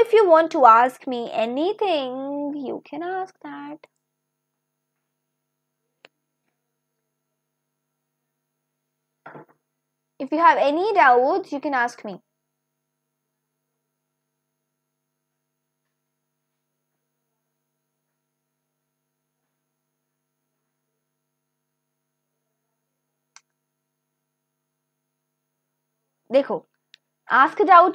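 A young woman speaks calmly into a close microphone, in short bursts with pauses.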